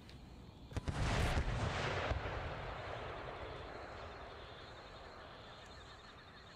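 A cannon blast booms and rumbles away.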